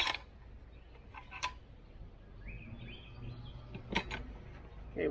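A metal tool clanks against the ground.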